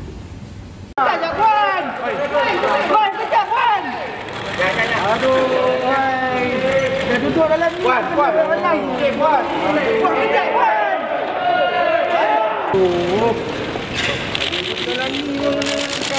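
Several men talk loudly and at once in a crowd close by.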